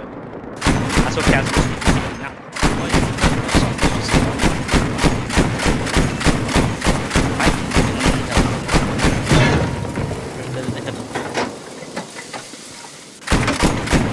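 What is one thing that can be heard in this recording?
A heavy gun fires rapid bursts of shots.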